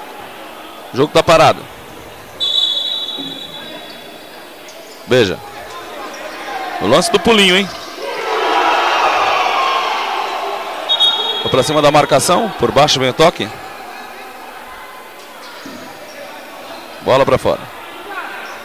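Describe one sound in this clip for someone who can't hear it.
A ball thumps against shoes and the court in a large echoing hall.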